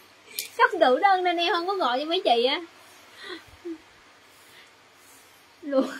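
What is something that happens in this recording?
A young woman speaks brightly and with animation, close by.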